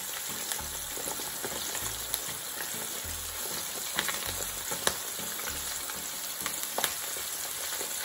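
Hot oil sizzles and crackles steadily in a frying pan.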